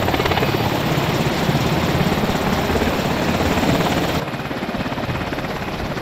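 A helicopter's rotor thumps as it flies overhead.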